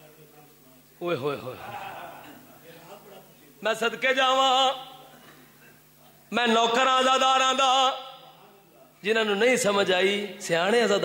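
A young man sings loudly and with feeling into a microphone, heard through loudspeakers.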